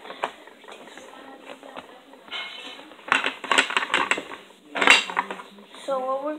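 Plastic toy pieces clatter and click against each other on a table.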